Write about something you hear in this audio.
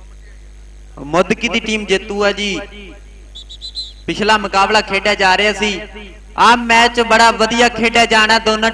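A man talks loudly and with animation over a loudspeaker, outdoors.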